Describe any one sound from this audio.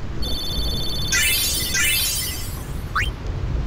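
Bright electronic chimes ring out in quick runs.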